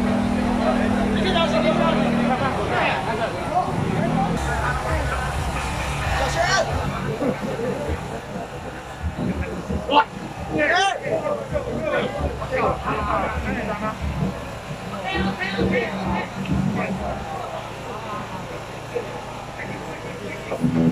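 A crowd of men and women chatter and call out all around, outdoors.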